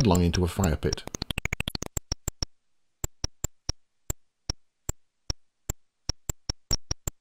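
Short electronic game blips tick in a steady rhythm.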